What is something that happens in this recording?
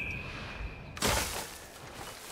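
A body thuds into a pile of hay.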